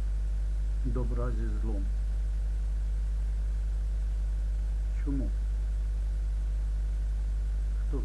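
An elderly man speaks briefly and calmly into a nearby microphone.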